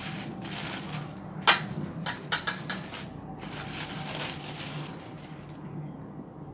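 A plastic bag crinkles and rustles up close.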